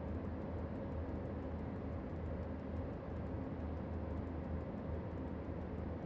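An electric locomotive hums and rumbles steadily as it runs along the track.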